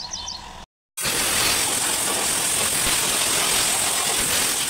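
A high-pressure water jet hisses into a car's interior.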